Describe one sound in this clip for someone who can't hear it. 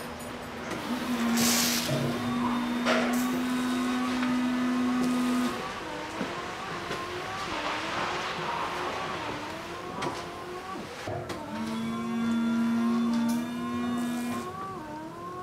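A washer pump hums steadily.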